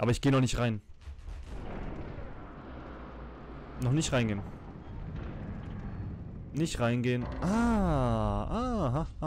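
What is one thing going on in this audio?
A heavy stone door grinds and rumbles slowly open.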